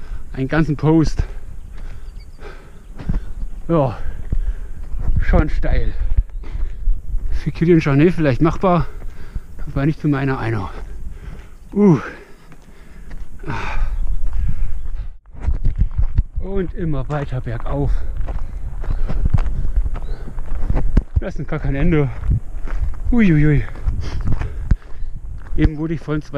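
A young man talks breathlessly and with animation, close to the microphone.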